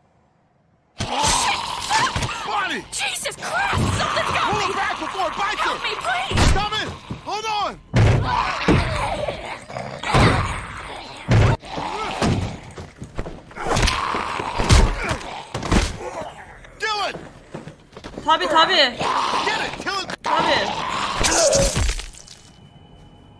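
A young man talks and shouts excitedly into a microphone.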